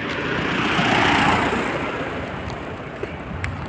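A car drives past close by, its tyres hissing on the road.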